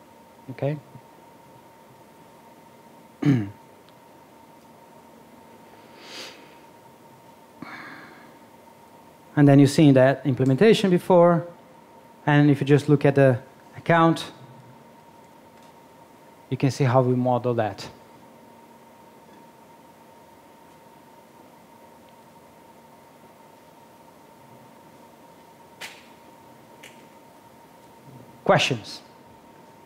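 A man speaks calmly through a microphone in a large hall, with long pauses.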